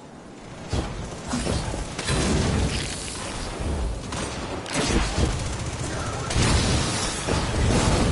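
Gunfire bursts in rapid shots.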